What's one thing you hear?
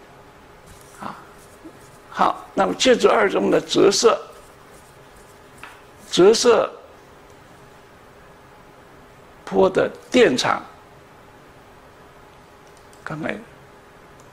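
An elderly man speaks calmly through a microphone, in short bursts with pauses.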